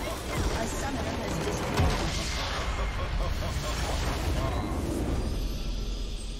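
Loud magical blasts and crashes of a battle burst out in quick succession.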